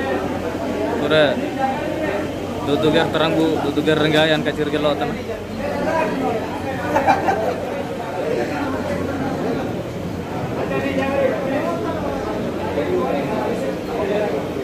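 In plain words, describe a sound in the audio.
A young man speaks close to the microphone.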